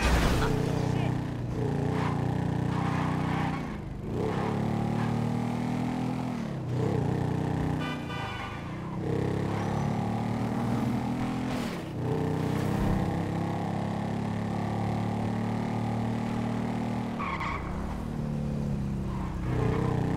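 A motorcycle engine revs hard, accelerating through the gears.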